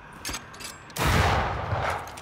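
A gunshot booms loudly and echoes off rock walls.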